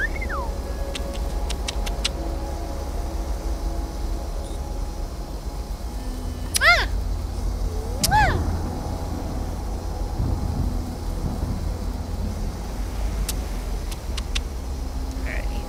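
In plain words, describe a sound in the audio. A young woman makes soft kissing sounds.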